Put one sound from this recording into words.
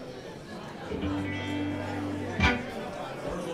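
An electric guitar plays a few notes through an amplifier.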